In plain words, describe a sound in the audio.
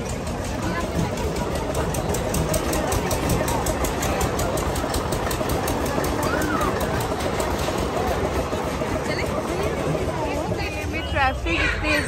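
A crowd chatters busily outdoors.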